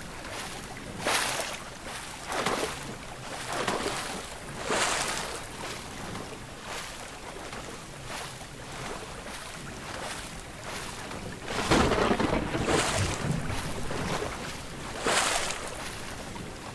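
Strong wind gusts roar in bursts.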